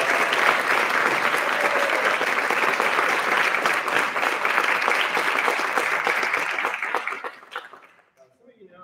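An audience applauds loudly in a large hall, then the applause dies away.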